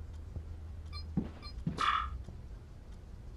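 An arcade game plays a short electronic jingle.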